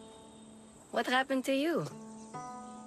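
A young girl asks a question.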